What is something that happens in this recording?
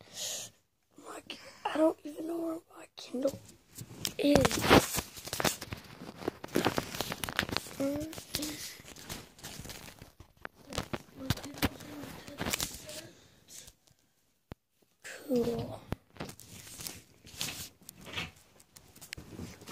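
A phone microphone rubs and knocks against skin and bedding.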